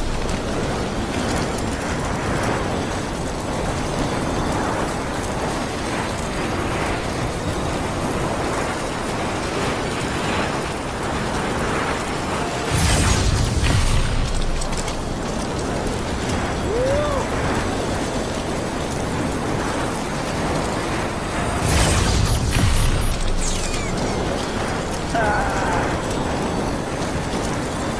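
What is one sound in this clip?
Footsteps crunch over rough ground.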